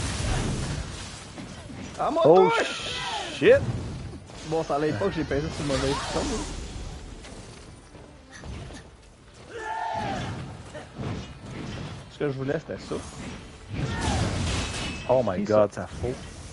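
Blades clash and slash in a fierce sword fight.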